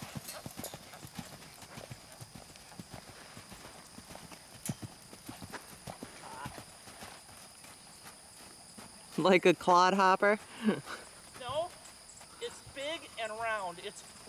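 A horse's hooves thud softly on packed dirt at a trot.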